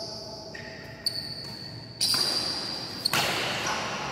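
Rackets strike a shuttlecock with sharp pops in an echoing hall.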